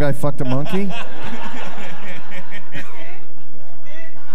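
A group of people laugh.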